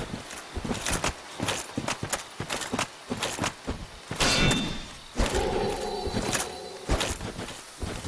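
Weapons clash with sharp metallic hits.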